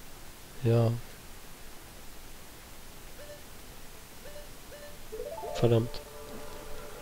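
Short electronic menu tones chime and blip.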